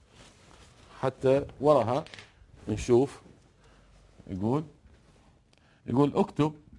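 A middle-aged man speaks with animation in short bursts, close to a microphone.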